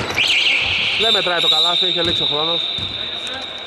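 Men shout across an echoing hall.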